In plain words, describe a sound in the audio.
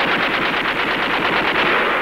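A flamethrower roars and hisses.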